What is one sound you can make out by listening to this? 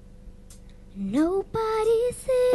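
A young girl sings into a microphone, heard through loudspeakers.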